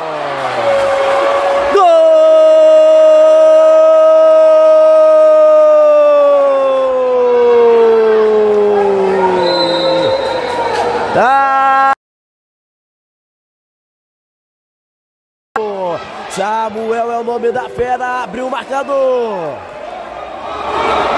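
A crowd cheers and shouts in an echoing hall.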